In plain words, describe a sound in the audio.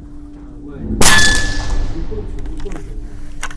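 A PCP air rifle fires a single shot with a sharp crack that echoes through an indoor range.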